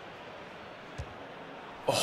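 A football is struck with a short thud.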